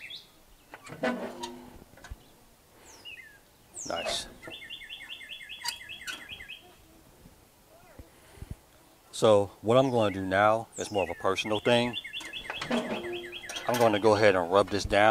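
A metal smoker lid creaks and clanks as it is opened and shut.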